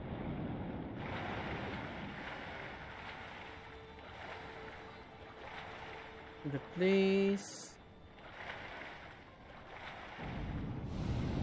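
Water splashes as a swimmer paddles along.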